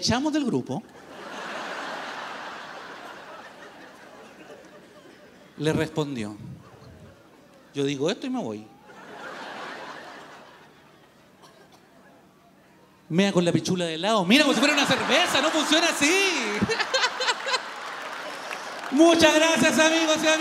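An audience laughs loudly in a large hall.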